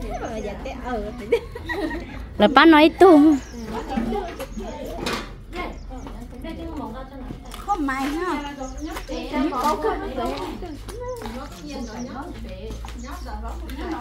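Young women talk with animation close by, outdoors.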